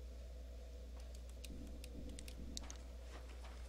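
Game menu clicks tick sharply several times.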